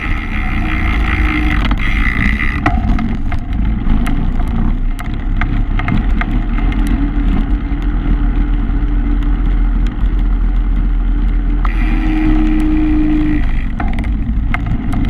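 Bicycle tyres rumble over wooden planks.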